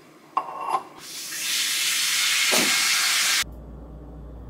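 Water pours from a bowl.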